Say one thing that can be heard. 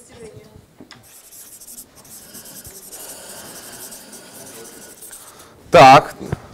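A marker squeaks on paper.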